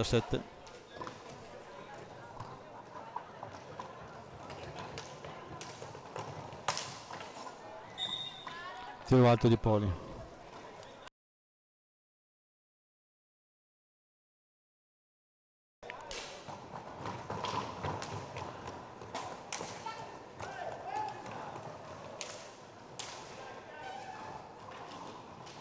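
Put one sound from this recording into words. Hockey sticks clack sharply against a ball.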